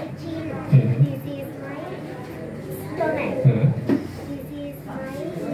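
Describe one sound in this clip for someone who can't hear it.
A young girl speaks into a microphone, heard through a loudspeaker.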